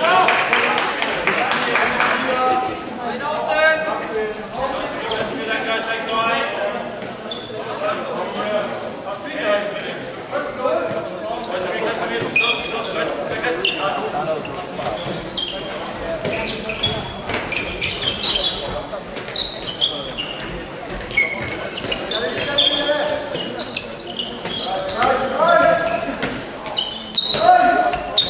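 Young men shout and call out to each other, echoing in a large hall.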